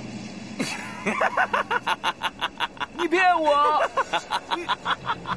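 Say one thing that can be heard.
A middle-aged man laughs loudly and heartily, close by.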